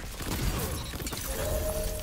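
A loud magical blast bursts and rumbles.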